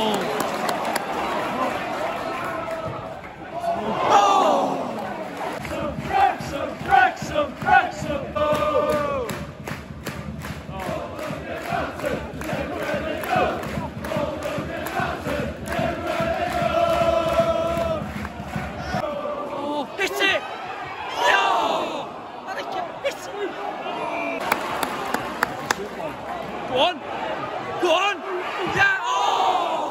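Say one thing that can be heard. A large stadium crowd sings and chants loudly outdoors.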